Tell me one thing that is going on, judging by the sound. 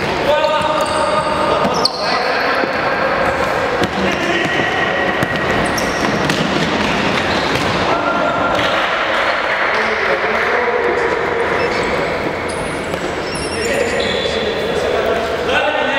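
Shoes squeak sharply on a wooden floor in an echoing hall.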